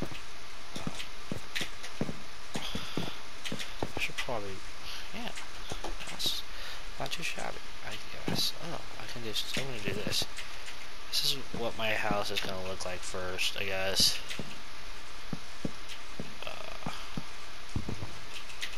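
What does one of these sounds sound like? Wooden blocks knock softly as they are placed one after another.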